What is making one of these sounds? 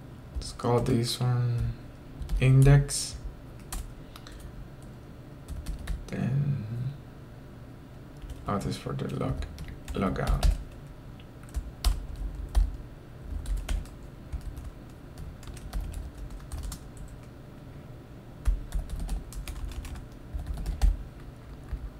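Keys clack on a computer keyboard in short bursts.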